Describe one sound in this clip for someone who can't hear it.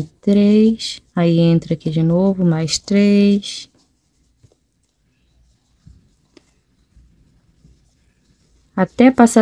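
Yarn rustles softly as hands handle crocheted fabric.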